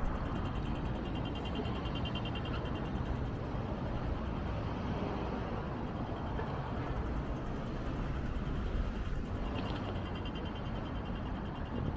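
A pedestrian crossing signal ticks rapidly.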